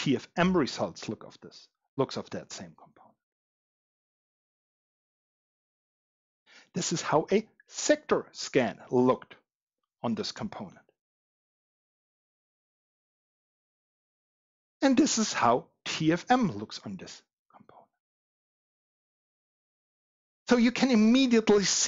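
A man speaks calmly and clearly into a headset microphone, with pauses.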